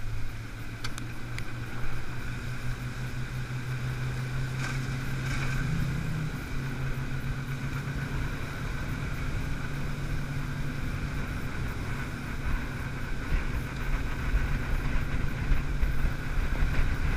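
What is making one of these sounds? An outboard motor hums steadily as a small boat moves along.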